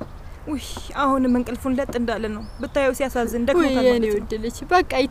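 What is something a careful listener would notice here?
A middle-aged woman speaks warmly and with animation close by.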